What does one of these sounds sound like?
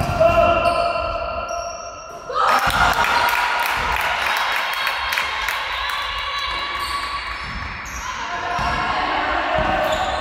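Sneakers squeak on a wooden floor in a large echoing hall.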